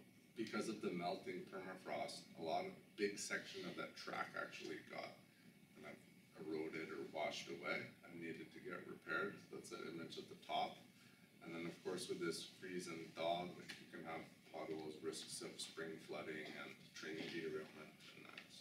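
A man speaks calmly and steadily, a little distant, in a room with slight echo.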